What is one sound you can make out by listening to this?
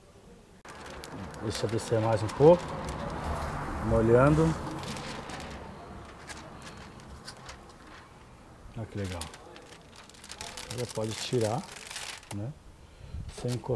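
Plastic film crinkles and rustles under a hand.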